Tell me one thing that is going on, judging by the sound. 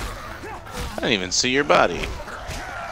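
A zombie groans and snarls close by.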